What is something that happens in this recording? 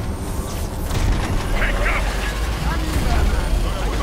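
An explosion booms and scatters debris in a video game.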